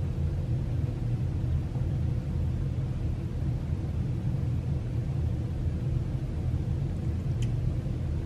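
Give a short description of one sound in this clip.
A cat sniffs at food close by.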